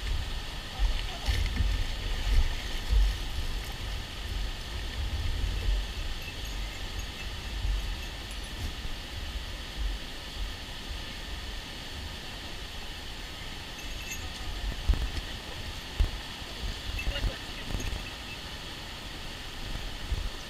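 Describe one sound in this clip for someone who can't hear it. Wind buffets outdoors in low gusts.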